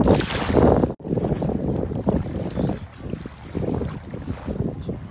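Shallow water splashes gently around legs.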